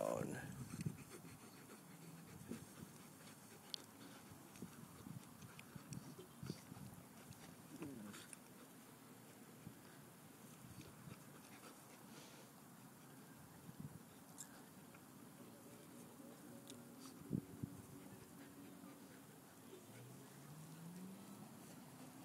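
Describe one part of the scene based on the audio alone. Two dogs play-fight on grass, growling and scuffling.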